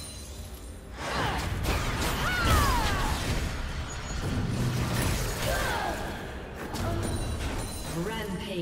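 Magical spells whoosh and crackle in a rapid fight.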